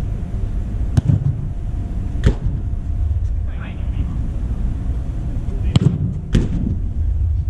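A football is kicked in a large echoing dome.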